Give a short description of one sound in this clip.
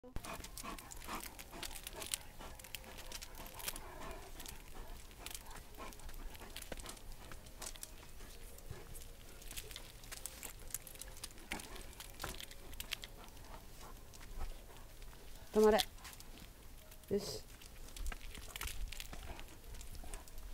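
A dog pants heavily.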